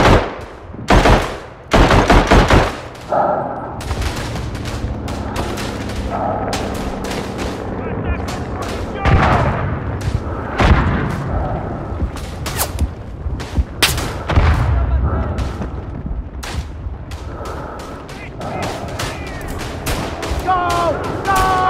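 Rifle shots crack loudly and echo, again and again.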